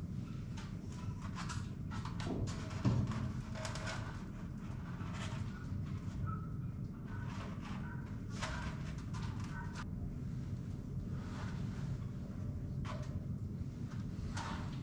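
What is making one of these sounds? A cable scrapes and rustles as it is pulled through a ceiling.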